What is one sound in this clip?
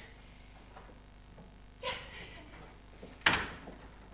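A window shuts with a bang.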